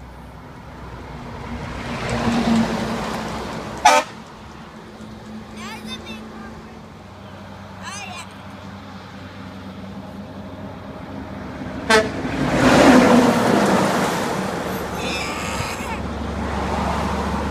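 Large trucks rumble past close by on a road.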